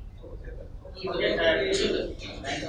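An elderly man speaks calmly into microphones.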